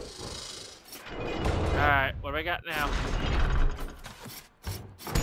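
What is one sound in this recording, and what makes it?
A heavy gate rumbles and grinds.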